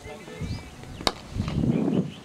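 A cricket bat strikes a ball with a sharp crack.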